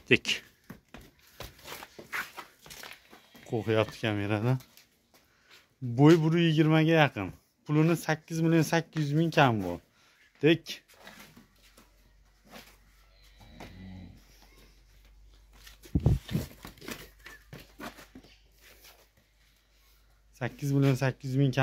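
Hooves tap and scrape on concrete.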